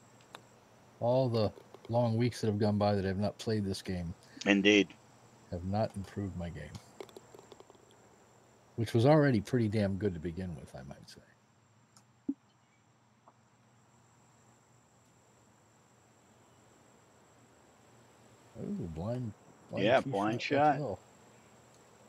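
A middle-aged man talks casually into a headset microphone.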